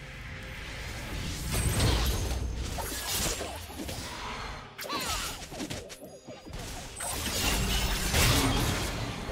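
Magic blasts and weapon hits clash in a fast fight.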